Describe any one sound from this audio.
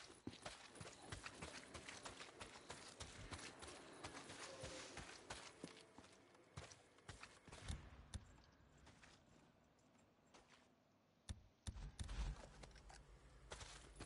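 Footsteps crunch on dry brush and gravel.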